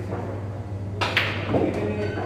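A cue sharply taps a billiard ball.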